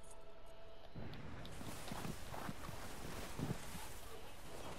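Boots crunch through deep snow.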